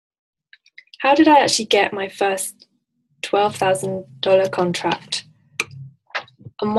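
A woman talks calmly and clearly into a microphone, heard as over an online call.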